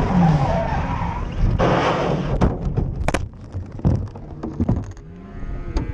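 A vehicle crashes with loud thuds and scraping.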